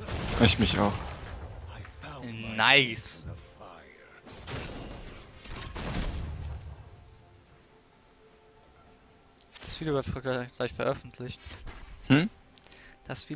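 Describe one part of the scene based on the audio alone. Video game spell effects and hits burst and crackle in quick bursts.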